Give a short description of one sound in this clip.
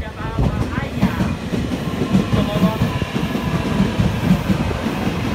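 Train wheels clack in a steady rhythm over rail joints.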